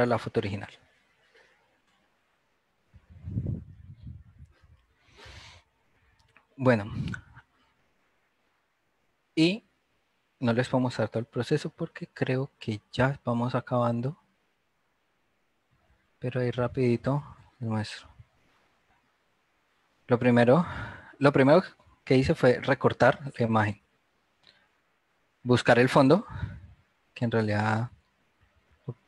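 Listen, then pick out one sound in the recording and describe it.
A man talks calmly through an online call.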